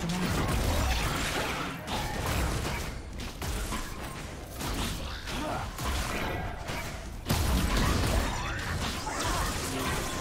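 Video game spell effects whoosh and crackle during a fight.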